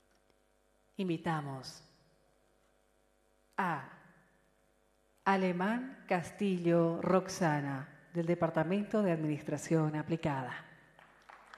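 A man speaks with animation through a loudspeaker in a large echoing hall.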